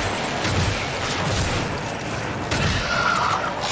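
A shotgun blasts in a video game.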